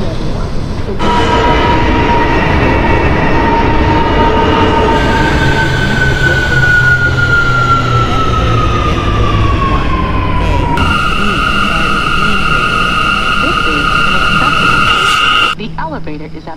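A train's electric motors whine, their pitch shifting as the train moves.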